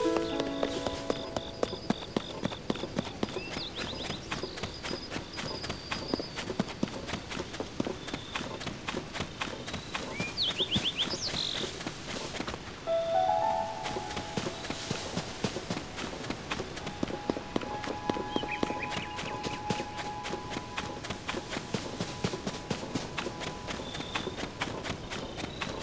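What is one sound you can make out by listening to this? Quick footsteps patter on grass and dirt.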